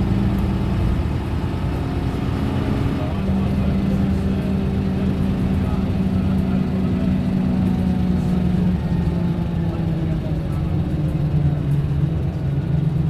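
A Leyland National bus's diesel engine drones under way, heard from inside.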